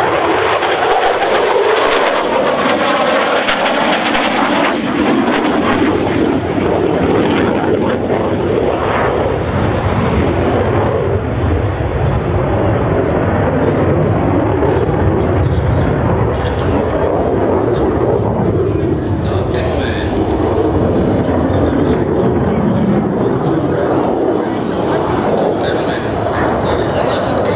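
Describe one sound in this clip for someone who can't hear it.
A single-engine F-16 fighter jet roars and rumbles overhead.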